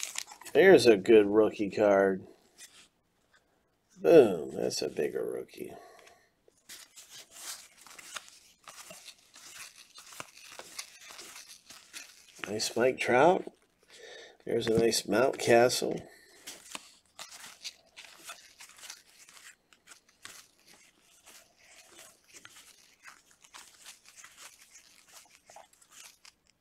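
Stiff trading cards rustle and slide against each other as they are flipped through.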